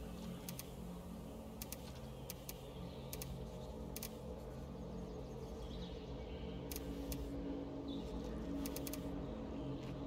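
Short soft clicks sound as menu items are selected.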